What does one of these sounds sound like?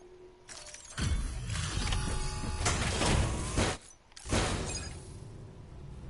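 A cargo lift whirs and rumbles as it moves.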